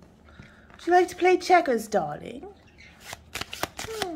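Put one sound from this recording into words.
Playing cards are shuffled with soft riffling clicks.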